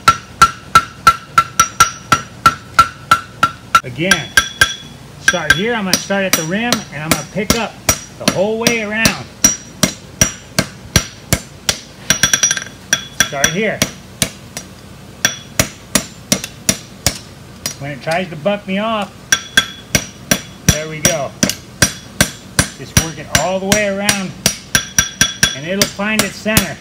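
A hammer rings sharply on hot metal against an anvil in a quick, steady rhythm.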